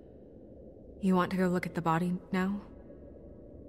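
A man speaks briefly in a low, calm voice.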